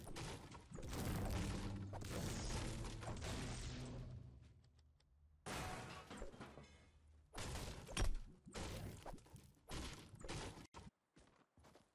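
A pickaxe chops into wood with heavy, repeated thuds.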